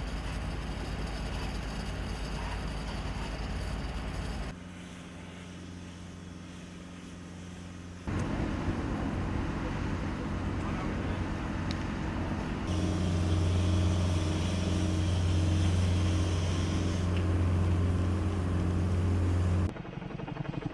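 Water sprays hard from a fire hose.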